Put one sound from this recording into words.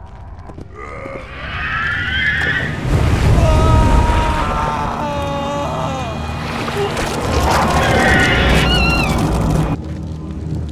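A creature lets out eerie, warbling wails.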